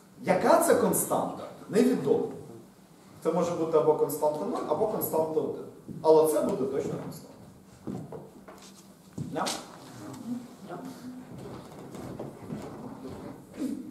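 A man lectures with animation.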